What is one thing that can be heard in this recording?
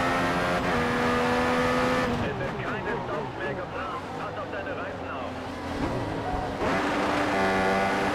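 A racing car engine screams at high revs, drops low while braking, then revs up again.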